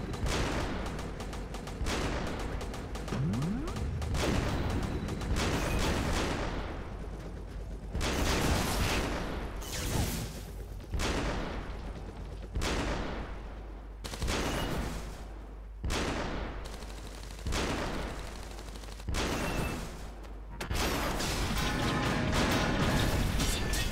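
Game tanks fire cannons in repeated loud booms.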